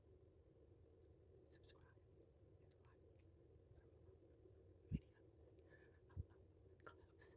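A woman makes soft smacking and clicking sounds with her lips and mouth.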